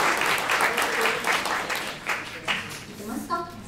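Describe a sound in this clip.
An audience claps and cheers in a hall.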